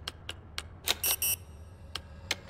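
An electronic keypad gives two short buzzing beeps.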